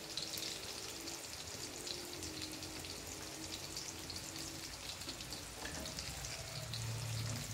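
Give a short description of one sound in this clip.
Patties sizzle and crackle as they fry in hot oil.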